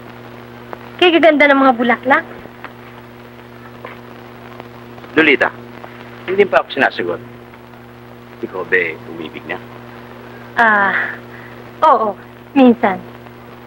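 A young woman answers gently.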